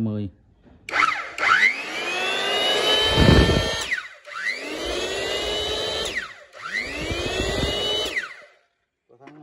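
An electric planer's motor whines up to speed and winds down, several times in a row.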